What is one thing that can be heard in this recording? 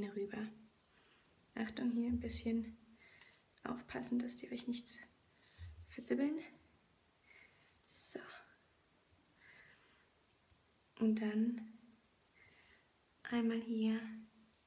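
Hair rustles softly as it is braided.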